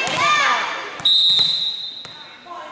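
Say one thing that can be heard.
A referee's whistle blows briefly.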